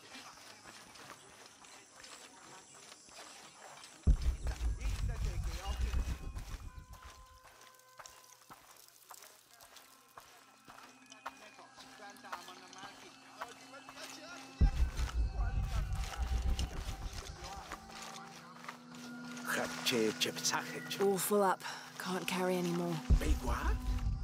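Footsteps crunch steadily on dirt and stone.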